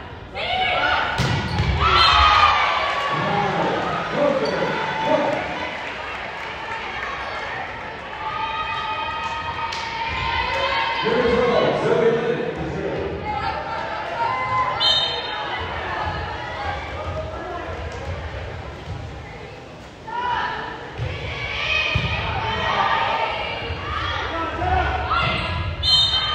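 Young women shout and cheer loudly in a large echoing gym.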